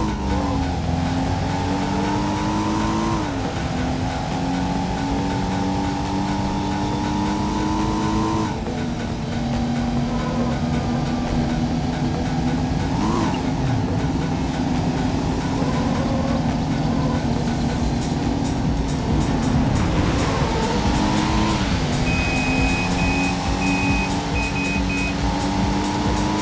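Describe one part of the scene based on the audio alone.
Car tyres crunch over gravel.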